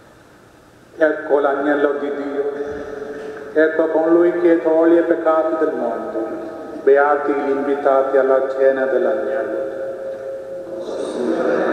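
A man chants slowly through a microphone in a large echoing hall.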